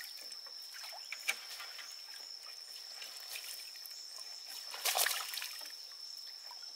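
A fishing net rustles and swishes as it is lifted from the water.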